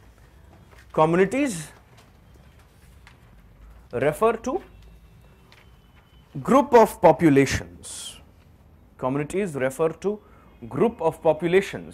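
A man lectures aloud in short bursts, with pauses between them.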